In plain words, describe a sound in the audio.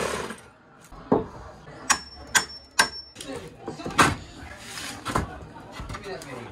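A board creaks and knocks as it is pried loose.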